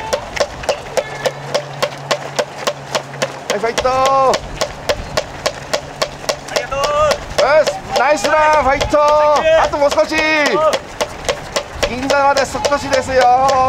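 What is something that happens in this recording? Many runners' shoes patter on pavement.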